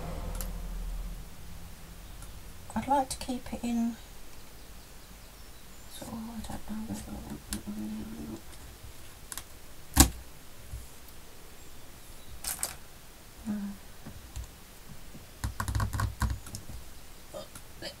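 Fabric and paper rustle softly as hands handle them.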